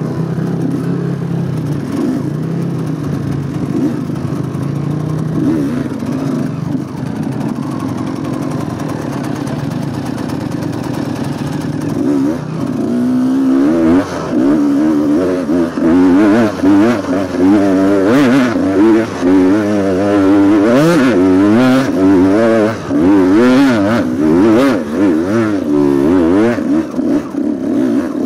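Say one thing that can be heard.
A dirt bike engine runs close by, its pitch rising and falling as the rider throttles.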